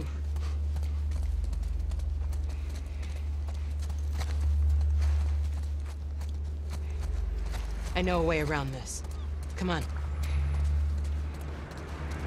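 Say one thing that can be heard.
Footsteps hurry over hard ground and up stone steps.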